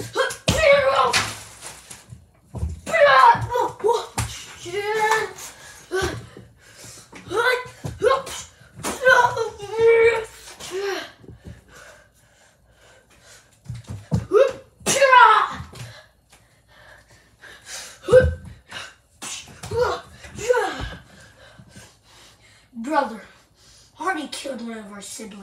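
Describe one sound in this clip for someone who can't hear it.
A young boy talks and shouts excitedly nearby.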